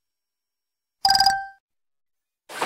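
A short game chime sounds.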